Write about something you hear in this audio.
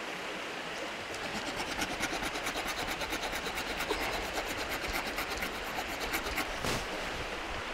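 A knife scrapes rapidly along a wooden stick.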